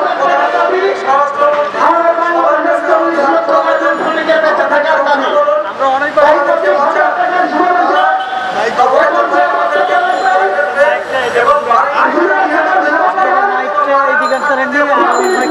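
A man speaks forcefully into a microphone, heard through a loudspeaker outdoors.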